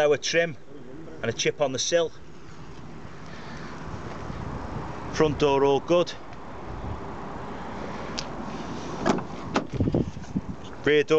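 A man talks close by, in short bursts.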